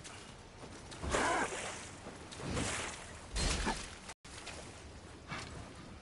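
A sword swishes and clashes in combat.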